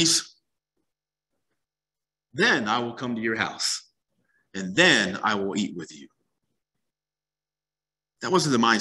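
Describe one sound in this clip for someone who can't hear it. A man speaks calmly through a microphone on an online call, with pauses.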